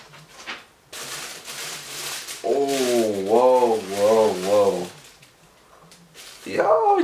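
Paper rustles and crinkles as it is unwrapped.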